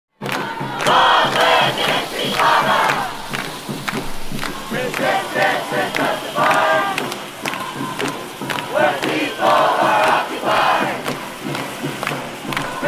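A large crowd of young men and women chants and shouts loudly outdoors.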